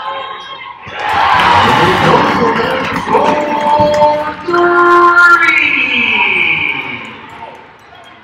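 A crowd in a large echoing arena cheers loudly.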